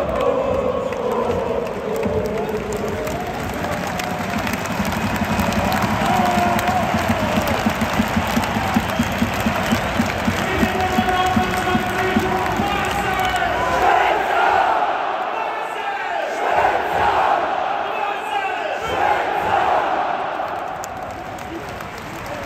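A large crowd cheers and chants loudly in an open stadium.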